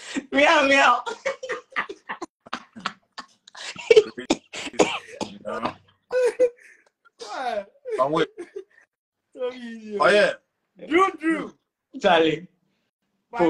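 A man laughs loudly over an online call.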